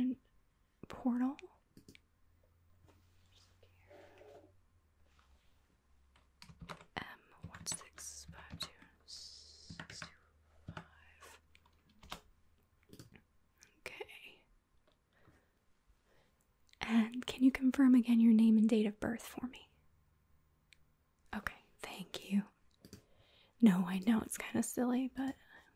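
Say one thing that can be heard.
A young woman speaks calmly into a microphone, in short bursts.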